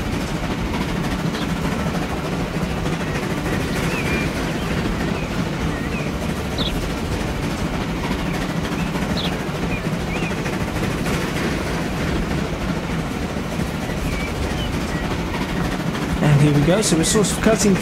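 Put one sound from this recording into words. Train wheels rumble and clack over the rails.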